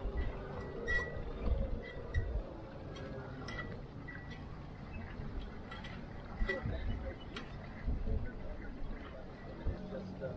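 A flag flutters and snaps in the wind.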